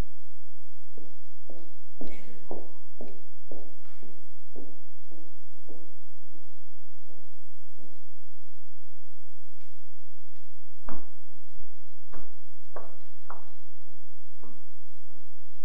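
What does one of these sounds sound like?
Footsteps thud slowly across a wooden floor in a large echoing hall.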